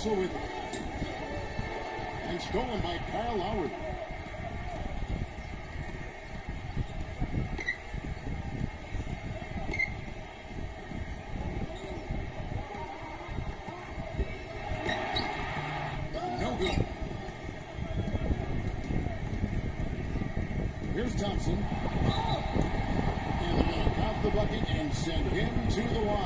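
A basketball video game plays crowd noise and squeaking shoes through a small phone speaker.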